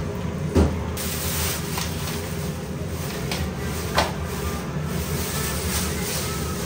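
A plastic bag rustles and crinkles as it is pulled away.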